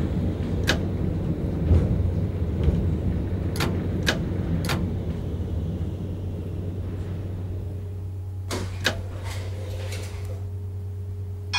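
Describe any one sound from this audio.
A tram rumbles along the rails and slowly comes to a stop.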